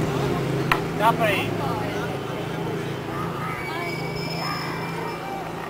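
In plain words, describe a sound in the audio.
Young women chat casually nearby.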